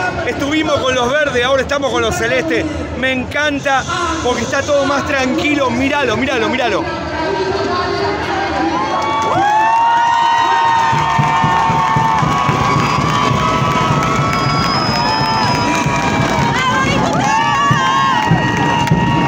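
A large crowd cheers and chants outdoors.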